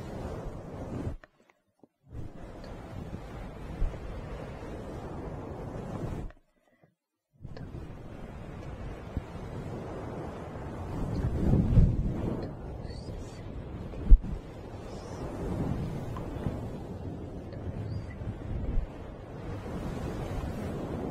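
A young woman whispers softly close to the microphone.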